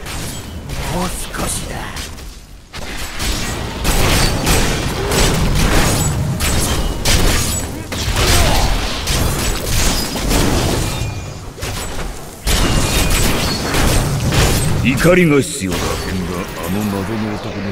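Lightning crackles and strikes repeatedly.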